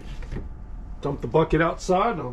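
An elderly man speaks calmly up close.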